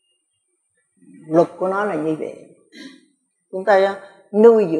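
An elderly woman speaks calmly and slowly into a close microphone.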